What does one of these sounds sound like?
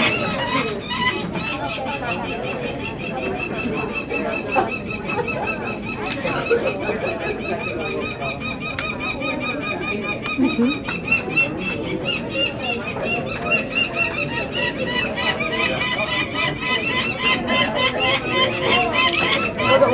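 A young bird chirps rapidly and insistently, close by.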